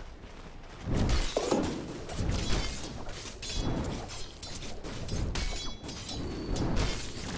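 Spell effects crackle and burst during a fight.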